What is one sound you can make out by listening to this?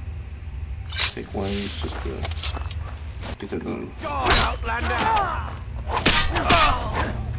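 Blades clash and strike in a close fight.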